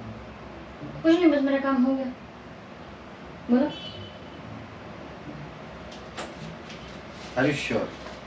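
A young woman answers calmly nearby.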